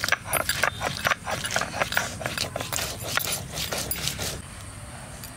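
A blade chops chillies on a stone.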